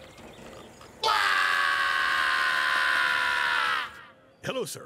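A cartoon creature lets out a long, loud, steady scream.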